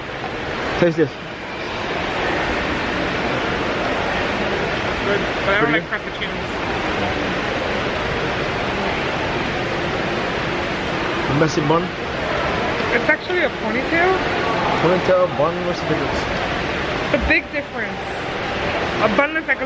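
A woman speaks casually, close by.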